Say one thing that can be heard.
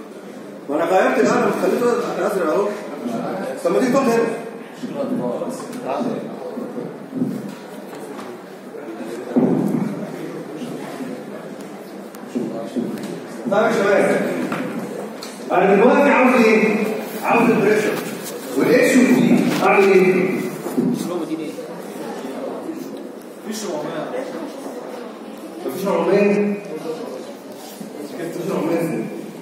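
A man lectures nearby, speaking at length with short pauses.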